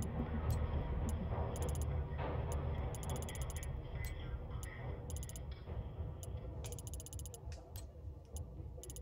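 A game menu clicks in quick ticks as a slider is moved.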